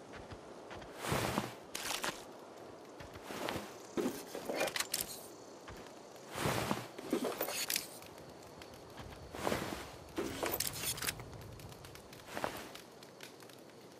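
Gear rustles and clinks as a fallen body is searched.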